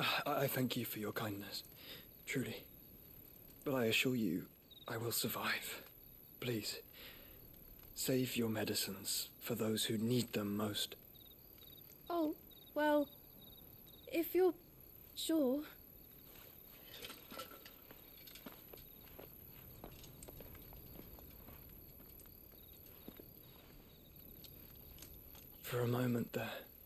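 A young man speaks softly and earnestly.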